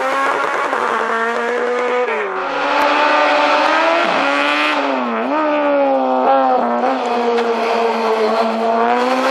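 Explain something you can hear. A race car engine roars loudly, revving up and down through gear changes as it approaches and passes close by.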